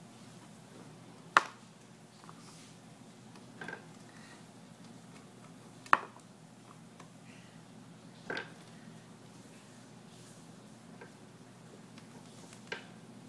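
A small rodent knocks a hard toy about with sharp clicks.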